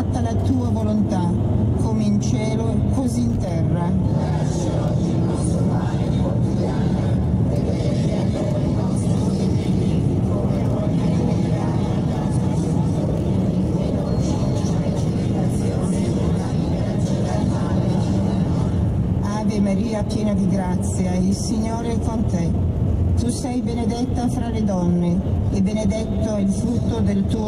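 Tyres roar steadily on a paved road.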